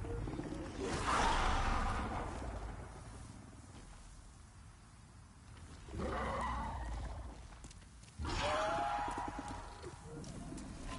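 A large beast roars loudly several times.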